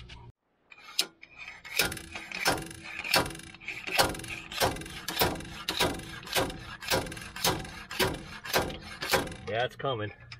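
Sharp metallic knocks ring out in a steady rhythm as a metal rod is driven against a wheel bearing.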